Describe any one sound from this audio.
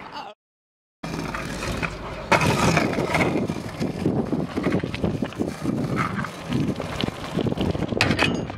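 Skateboard wheels roll and rattle over rough asphalt.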